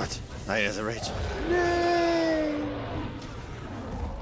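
A large monster roars.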